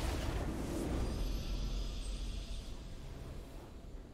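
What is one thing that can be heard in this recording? A triumphant video game fanfare plays.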